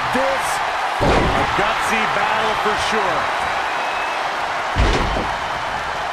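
A heavy body slams hard onto a wrestling ring mat with a deep thud.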